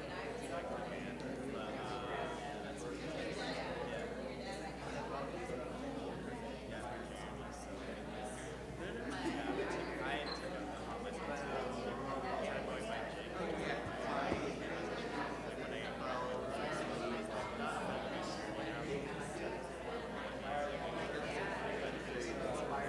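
A young woman speaks calmly through a microphone in a large echoing hall.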